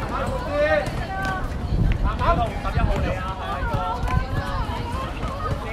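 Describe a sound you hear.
Young girls shout and call out to each other nearby, outdoors.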